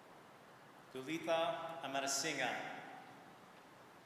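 A man speaks briefly into a microphone in a large echoing hall.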